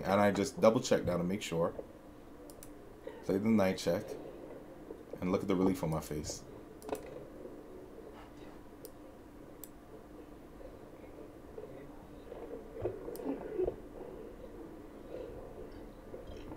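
Chess pieces click onto a board.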